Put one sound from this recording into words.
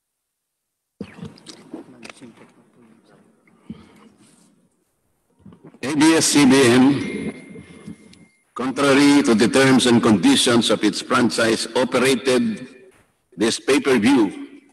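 A man speaks steadily through a microphone.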